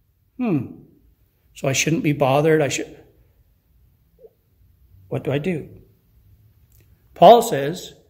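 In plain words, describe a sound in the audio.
An older man speaks calmly and deliberately into a nearby microphone, with pauses between phrases.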